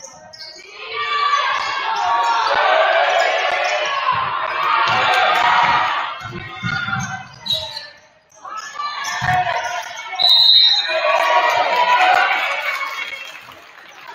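Young men shout and call out in an echoing gym.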